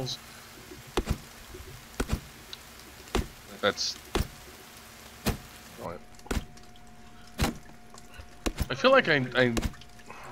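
An axe chops into a tree trunk with sharp, regular thuds.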